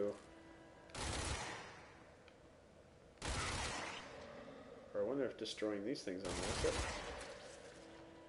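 A pistol fires sharp, loud shots in an echoing hall.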